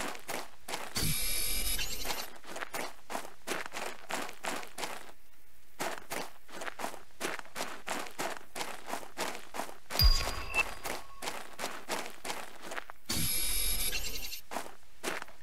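A mining tool hums and crackles with a buzzing electric whine.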